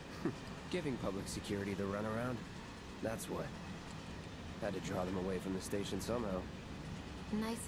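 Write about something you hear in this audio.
A young man speaks calmly and flatly.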